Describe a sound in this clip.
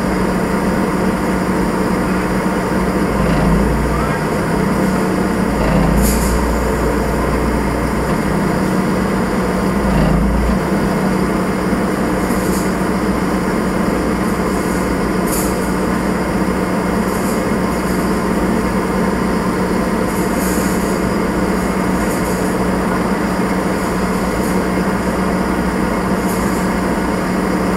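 A diesel engine idles steadily close by.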